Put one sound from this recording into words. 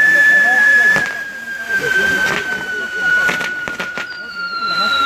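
Fireworks pop and bang sharply.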